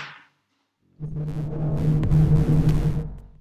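A game's music plays loudly.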